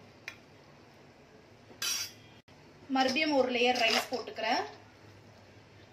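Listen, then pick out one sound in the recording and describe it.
A metal ladle scrapes and taps against a metal pot.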